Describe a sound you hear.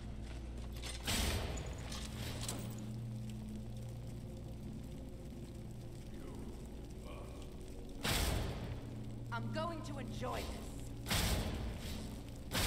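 A magic spell fizzes and whooshes.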